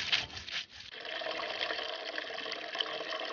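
Liquid pours and splashes into a pot.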